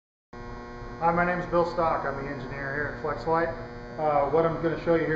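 A man speaks calmly and explains, close to a microphone.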